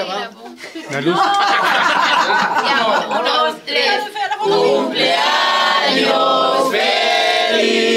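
A group of men and women sing together loudly and cheerfully close by.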